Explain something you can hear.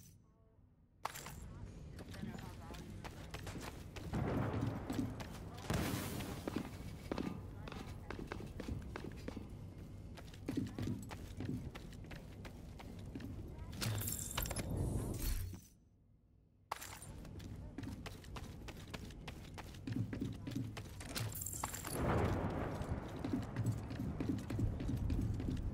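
Footsteps clank on metal stairs and walkways.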